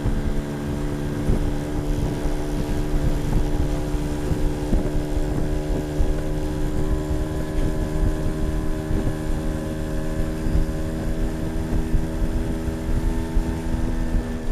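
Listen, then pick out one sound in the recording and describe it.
An engine hums steadily close by.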